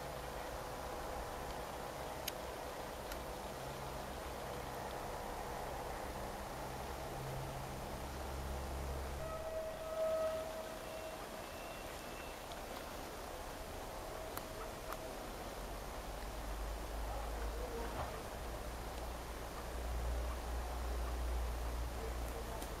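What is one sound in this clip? A train engine rumbles as it slowly approaches.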